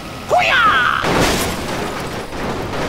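A truck crashes with a loud metal crunch.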